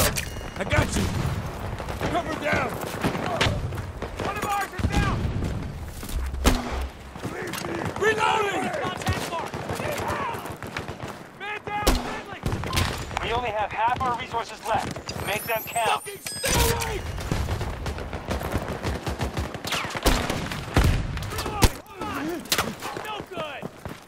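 Gunfire cracks in sharp bursts nearby.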